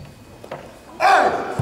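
A young man shouts a sharp karate kiai in a large echoing hall.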